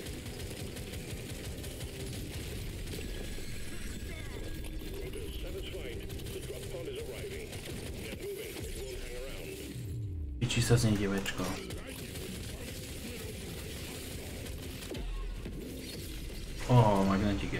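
Gunfire and explosions from a video game rattle on steadily.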